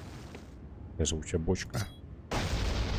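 A young man talks into a close microphone.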